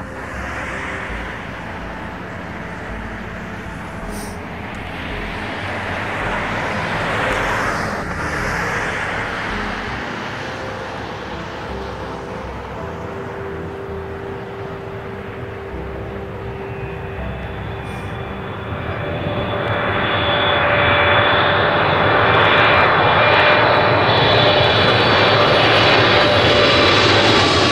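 A jet airliner's engines roar steadily, growing louder as it passes low overhead.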